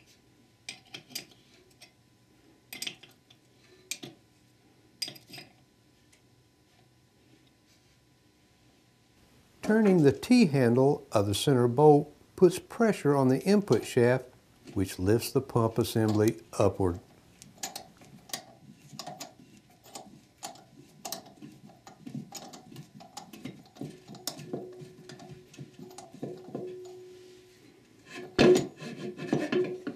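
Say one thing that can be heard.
Metal parts click and clink as a hand tool is turned.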